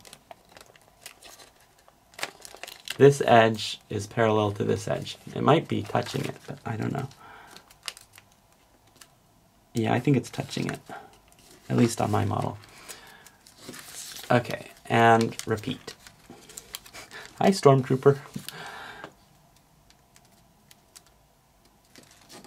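Paper crinkles and rustles softly as it is folded and pressed.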